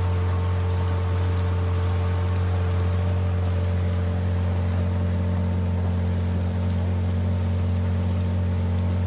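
A boat's outboard motor drones steadily close by.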